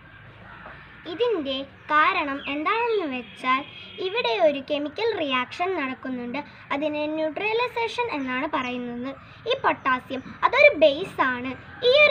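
A young girl speaks close by, in a clear, sing-song voice.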